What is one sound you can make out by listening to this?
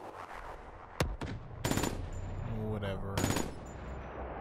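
A rifle fires several sharp, loud shots.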